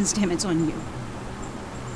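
A woman speaks firmly and close by.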